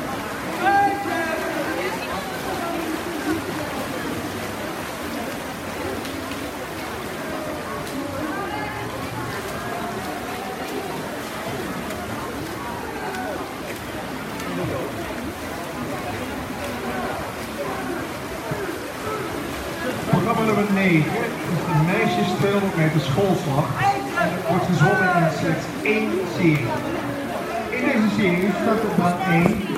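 A crowd chatters and cheers in a large echoing hall.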